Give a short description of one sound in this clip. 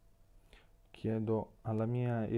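A man speaks calmly and close to a microphone.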